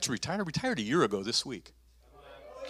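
A man speaks with animation through a microphone in a large room.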